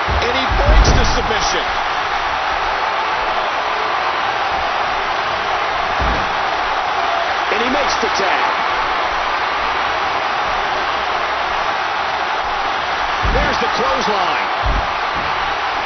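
Heavy bodies thud onto a wrestling mat.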